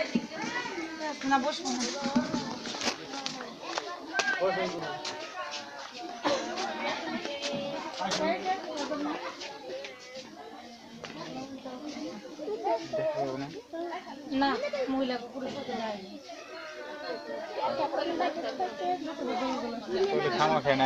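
Several women talk and wail nearby, outdoors.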